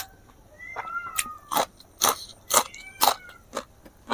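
A crisp vegetable crunches between a man's teeth.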